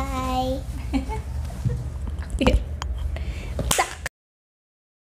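A young woman laughs and speaks cheerfully, close by.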